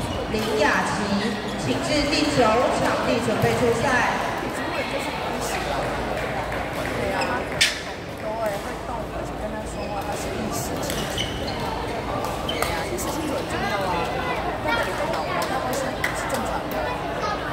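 Shuttlecocks are hit with rackets in a large echoing hall.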